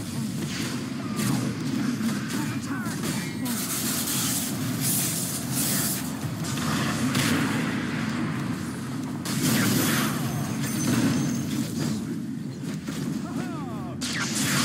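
Magic blasts and clashing blows burst again and again in a fast battle.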